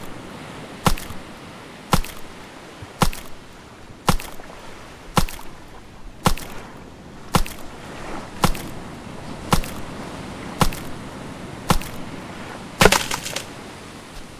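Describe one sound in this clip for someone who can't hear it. A knife chops into a tough plant stalk with steady, evenly spaced blows.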